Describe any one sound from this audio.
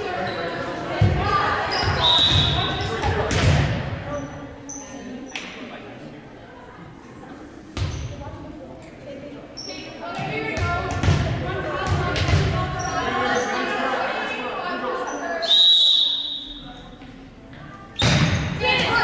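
A volleyball thuds as players hit it, echoing in a large hall.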